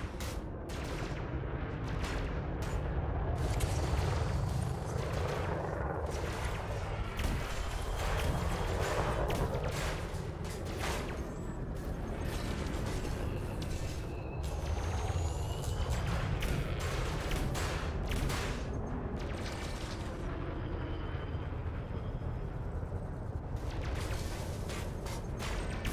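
A spaceship engine rumbles low.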